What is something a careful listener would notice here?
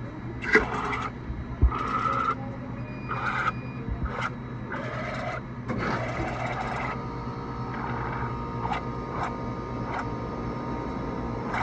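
Thick slush squirts and gurgles from a dispenser nozzle into a cup.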